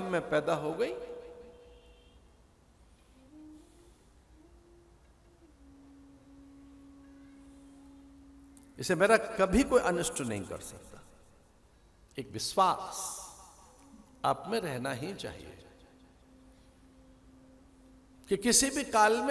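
An elderly man speaks slowly and with feeling into a microphone, with long pauses.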